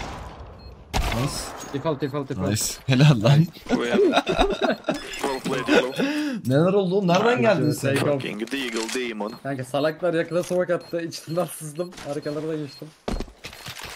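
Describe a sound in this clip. A young man talks with animation into a headset microphone.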